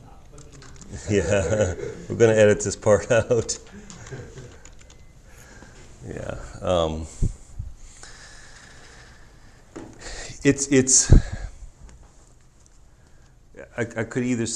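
A middle-aged man speaks in a lecturing tone, close by.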